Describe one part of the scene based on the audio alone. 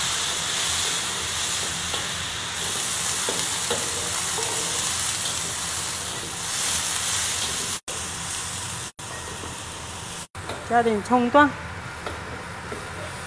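Food sizzles loudly in a hot pan.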